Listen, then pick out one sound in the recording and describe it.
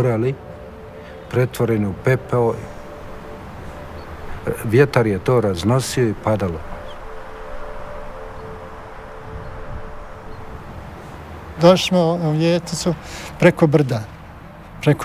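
An elderly man speaks calmly and clearly, close to a microphone.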